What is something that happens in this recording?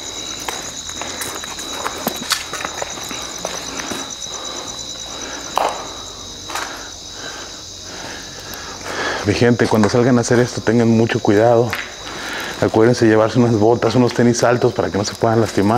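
Footsteps crunch on the ground.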